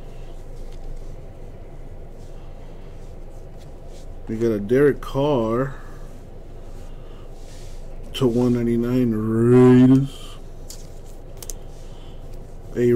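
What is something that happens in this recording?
Trading cards rustle and slide against each other as hands shuffle them.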